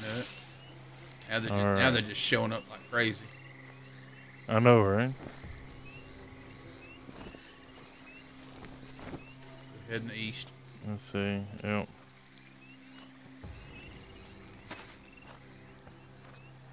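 Footsteps rustle through leaves and undergrowth.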